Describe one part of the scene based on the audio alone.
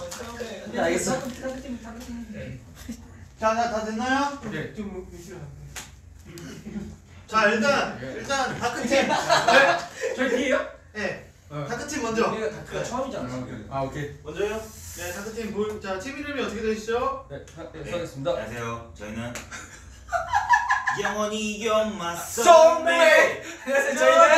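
Several young men talk and chatter with animation, close by.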